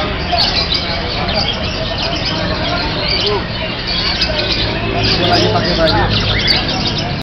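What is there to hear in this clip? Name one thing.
Many caged birds chirp and twitter loudly and constantly.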